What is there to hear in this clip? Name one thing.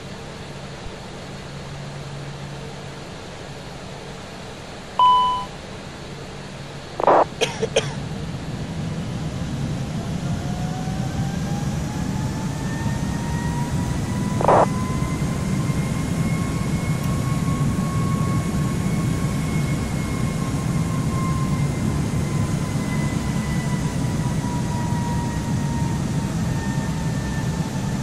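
Jet engines roar steadily and slowly grow louder.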